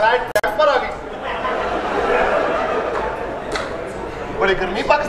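A man talks loudly with animation in a large echoing hall.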